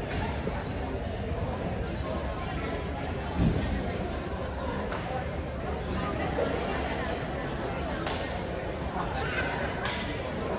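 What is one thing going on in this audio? A crowd of young people chatter in a large echoing gym.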